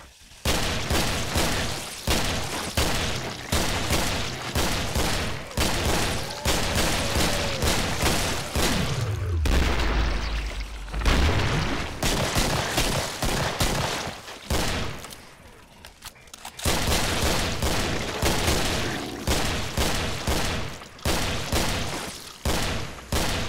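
Guns fire in rapid bursts, echoing down a corridor.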